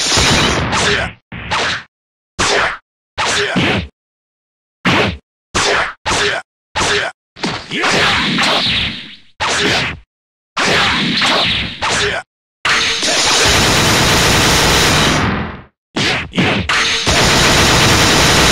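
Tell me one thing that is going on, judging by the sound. Punches and kicks land with sharp hits in quick bursts.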